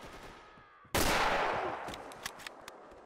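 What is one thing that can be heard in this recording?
A rifle fires a single loud shot that echoes.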